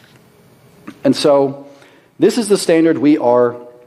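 A young man speaks through a microphone in a large echoing hall.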